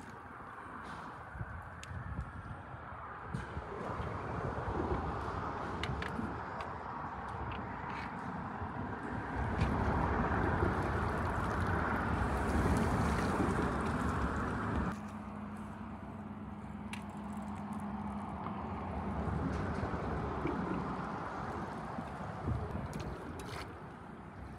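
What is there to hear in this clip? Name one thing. Water rushes and laps nearby.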